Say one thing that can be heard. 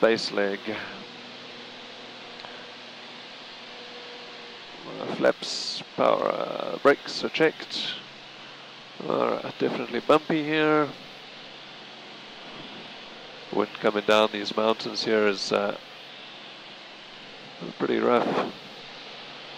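A man speaks calmly through a headset microphone.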